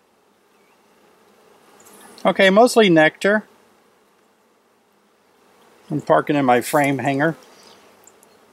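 Bees buzz softly close by.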